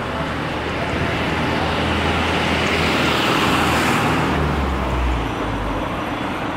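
A vehicle passes close by, its rumble swelling and fading.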